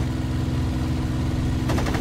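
Anti-aircraft shells burst nearby.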